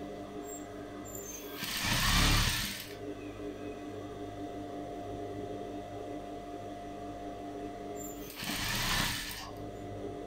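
A sewing machine motor hums steadily.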